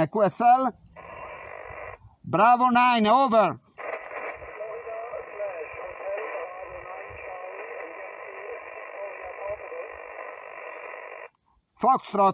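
A thin voice with static comes through a small portable radio's loudspeaker.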